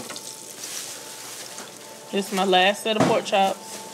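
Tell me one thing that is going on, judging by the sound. Oil sizzles and bubbles in a deep fryer.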